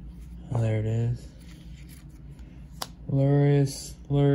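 Playing cards shuffle and rustle softly under a hand.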